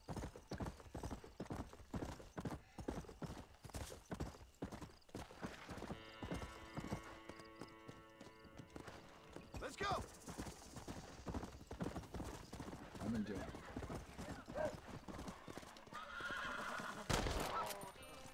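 Horse hooves clop steadily on a dirt trail.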